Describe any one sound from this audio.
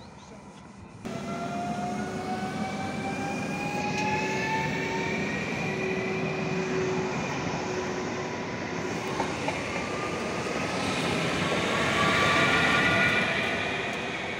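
An electric train's motors whine, rising steadily in pitch.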